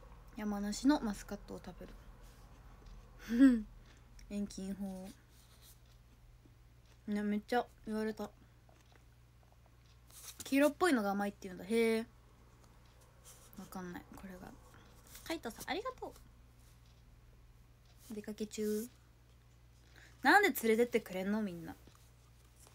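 A young woman talks close by in short bursts with pauses.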